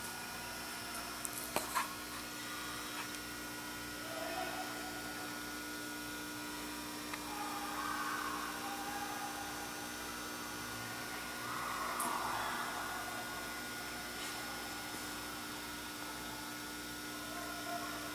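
A small model plane's propeller whirs softly overhead in a large hall.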